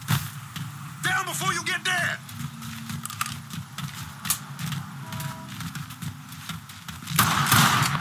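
Footsteps run over dirt and gravel.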